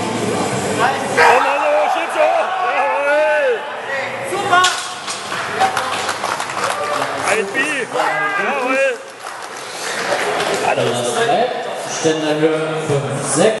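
Men shout encouragement loudly.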